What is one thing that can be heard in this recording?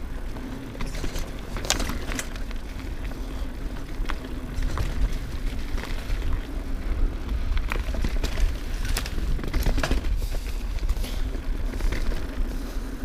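Wind rumbles past the rider.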